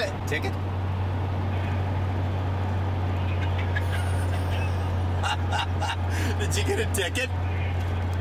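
A pickup truck's engine rumbles close by as it passes alongside.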